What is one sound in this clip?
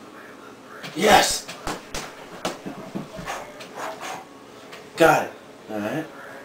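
Gloved fists thump hard against a punching bag.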